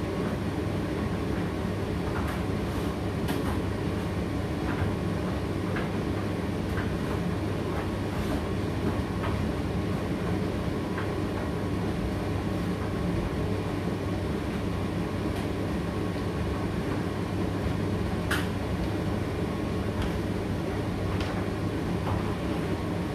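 A condenser tumble dryer runs with a steady hum and rumble.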